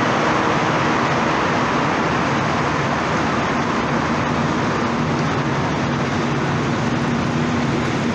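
A rubber-tyred metro train rolls past along a platform.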